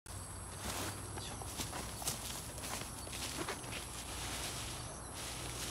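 Leaves rustle as a man brushes through plants.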